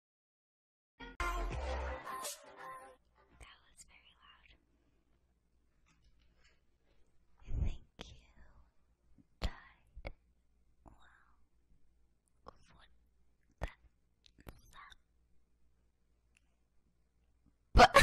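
A young woman speaks softly and close into a microphone.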